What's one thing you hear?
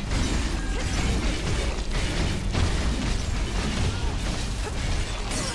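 Sword blows and magic blasts crash and whoosh in a game fight.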